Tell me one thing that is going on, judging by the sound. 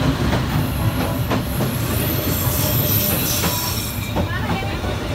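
A train's wheels screech high on the rails.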